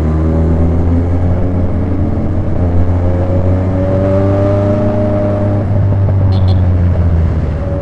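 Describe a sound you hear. A motorcycle engine hums steadily close by, its pitch rising and falling with the throttle.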